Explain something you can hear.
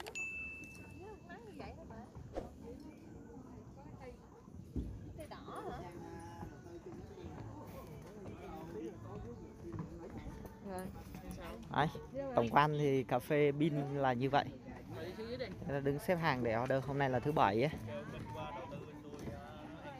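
Young men and women chat nearby in a low murmur, outdoors.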